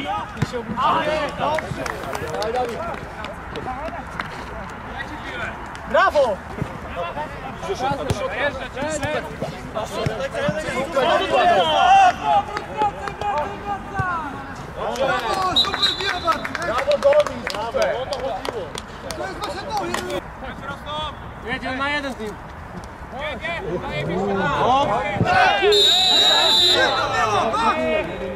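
Men shout to each other outdoors across a sports pitch.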